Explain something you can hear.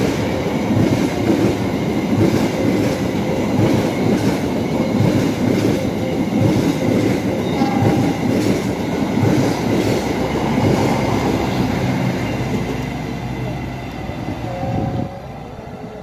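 A passing train roars by close at hand with a loud, rattling rumble.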